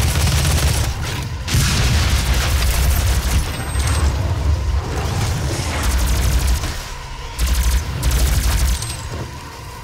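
A heavy gun fires in rapid, booming bursts.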